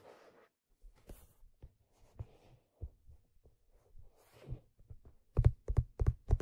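Fingers lightly brush and scratch leather, close up.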